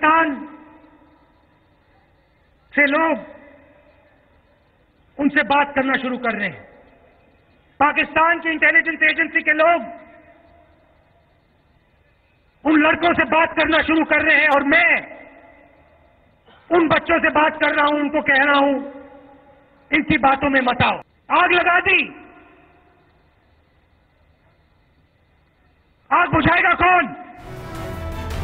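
A young man speaks forcefully into a microphone in bursts with pauses, heard through a loudspeaker.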